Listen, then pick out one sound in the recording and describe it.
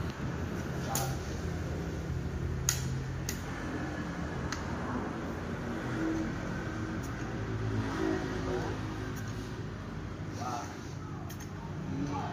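A rifle's mechanism clicks sharply.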